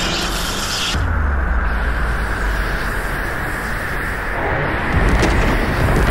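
An energy blast whooshes and explodes with a deep boom.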